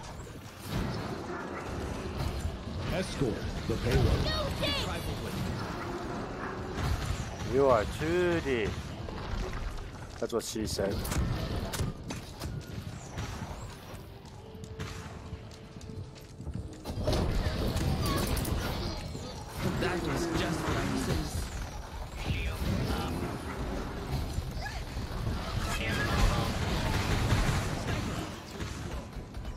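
Game sound effects chime and whoosh as fighting goes on.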